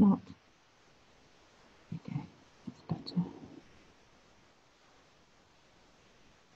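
A paintbrush softly brushes across paper.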